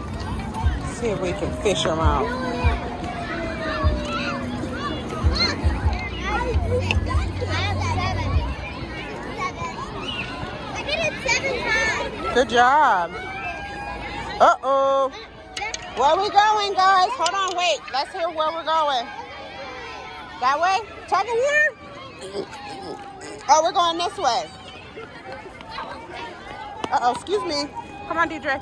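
Young children chatter and shout nearby outdoors.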